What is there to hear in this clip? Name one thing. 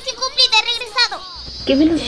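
A young woman speaks in a raised, animated voice.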